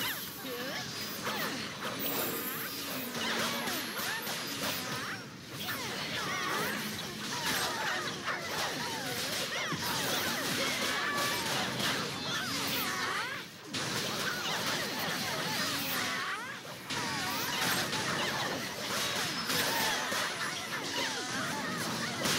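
Weapons clash and strike repeatedly.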